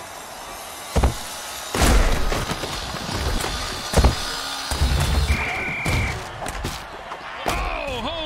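Players collide with heavy, thudding impacts.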